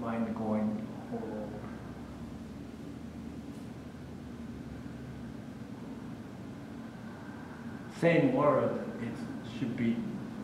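An elderly man speaks calmly through a microphone in an echoing hall, with pauses.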